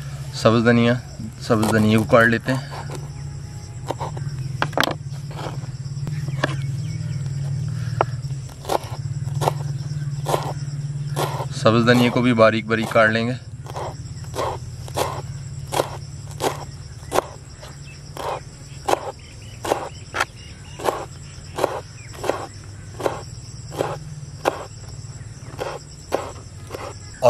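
A knife chops herbs on a wooden board with quick, regular knocks.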